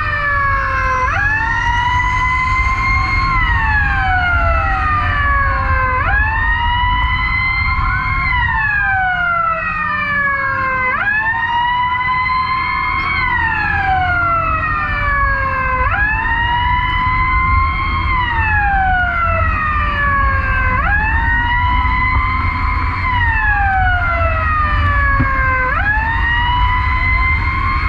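Engines rumble low and steady in traffic.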